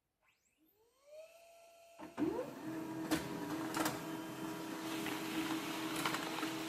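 A printer whirs and rumbles as it feeds and prints a page.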